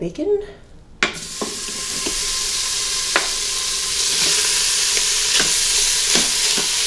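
Meat sizzles loudly in a hot pot.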